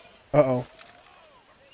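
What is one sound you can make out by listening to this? A young man shouts briefly into a close microphone.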